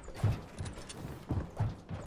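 A pickaxe strikes a wall.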